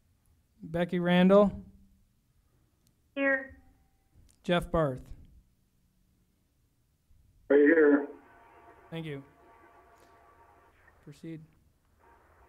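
A man speaks calmly into a microphone, with short pauses.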